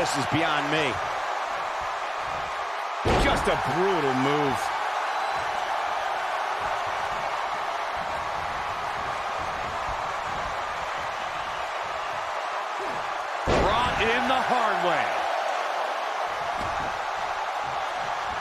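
A large crowd murmurs and cheers steadily in a big hall.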